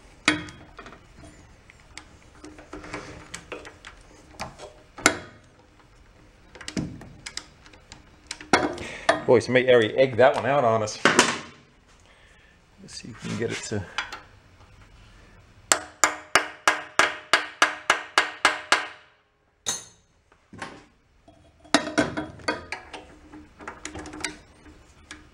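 Metal tools clink against a metal pump.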